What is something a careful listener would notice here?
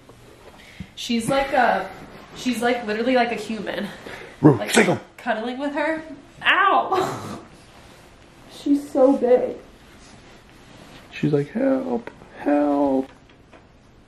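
A young woman speaks softly and affectionately close by.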